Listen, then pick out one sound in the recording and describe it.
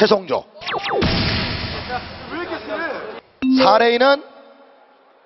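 A young man speaks with animation into a microphone.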